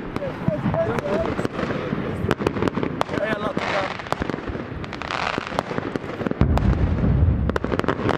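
Fireworks crackle and bang rapidly.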